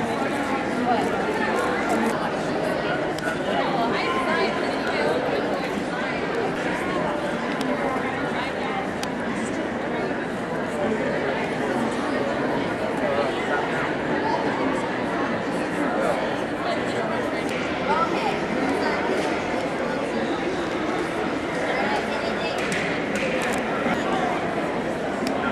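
A crowd of people chatter all around in a large echoing hall.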